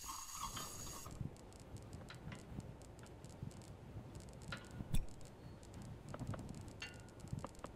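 Metal parts clank and creak.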